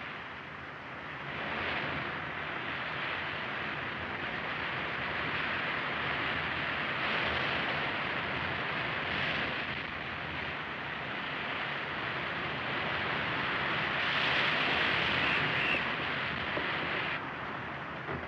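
Waves rush and splash against a ship's hull.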